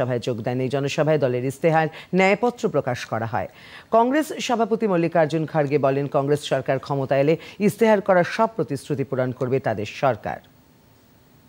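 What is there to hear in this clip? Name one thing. A woman reads out the news calmly and clearly through a microphone.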